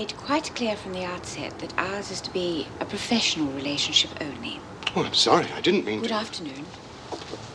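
A middle-aged man answers calmly, close by.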